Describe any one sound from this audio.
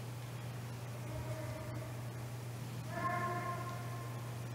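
A middle-aged man chants in a steady sung voice through a microphone in a large echoing hall.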